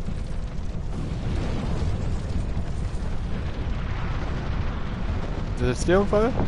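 A fire roars and whooshes nearby.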